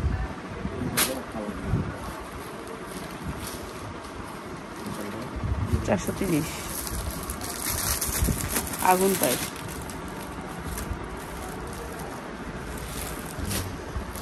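Cloth rustles as fabric is unfolded and smoothed by hand.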